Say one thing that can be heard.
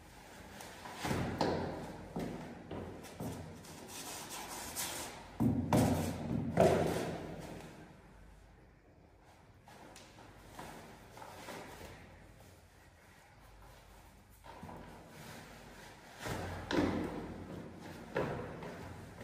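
Shoes scuff and tap on a hard floor.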